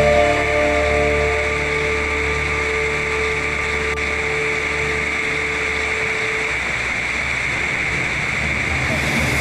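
A waterfall roars and splashes steadily onto rocks.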